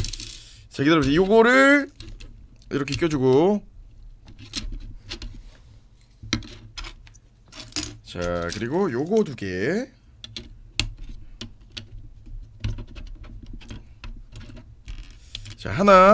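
Plastic toy bricks click and tap together.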